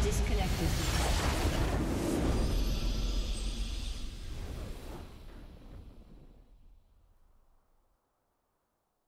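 A triumphant game victory fanfare plays loudly and fades away.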